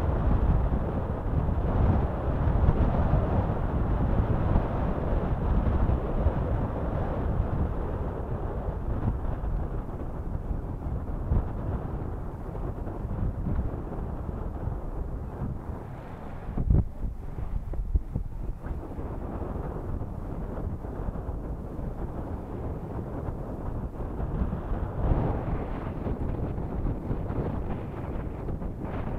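Water laps against rocks.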